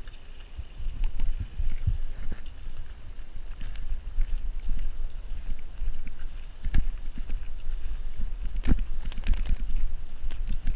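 Bicycle tyres crunch and rattle over gravel.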